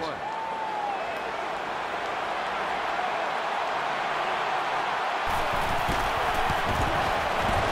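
A large crowd roars steadily and grows louder.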